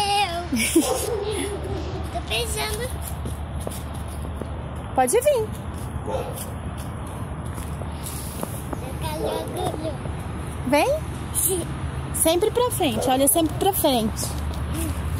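A young boy talks.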